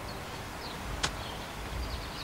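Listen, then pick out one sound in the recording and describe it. A golf club clicks sharply against a ball.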